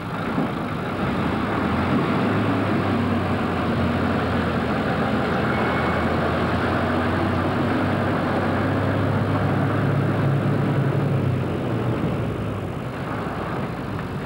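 A six-wheeled military truck engine rumbles as the truck pulls away and turns.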